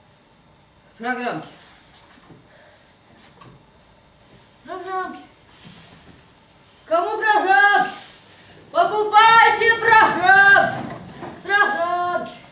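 A woman sings in a high, wavering voice in an echoing hall.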